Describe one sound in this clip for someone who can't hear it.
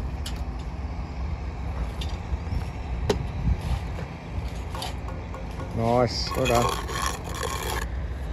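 A concrete block scrapes and knocks as it is set onto a wall.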